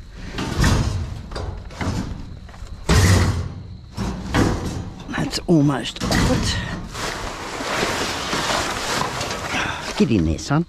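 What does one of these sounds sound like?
Metal cart frames clatter and rattle as they are pulled.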